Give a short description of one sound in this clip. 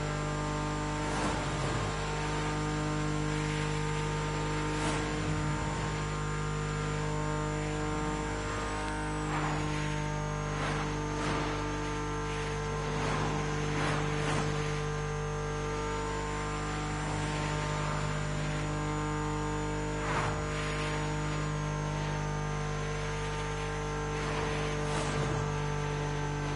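Other cars whoosh past quickly.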